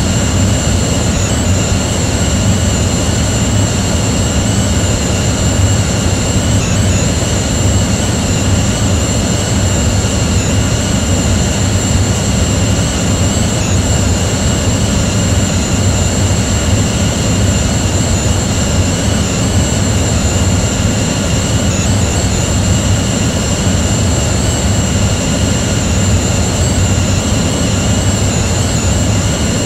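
Jet engines roar steadily with a high whine.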